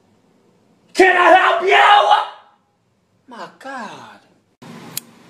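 A teenage boy speaks loudly and close by.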